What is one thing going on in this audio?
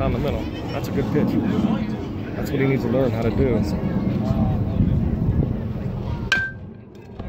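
Nearby spectators chatter.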